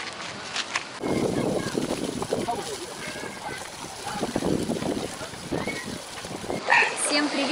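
Water from an outdoor shower splashes onto people.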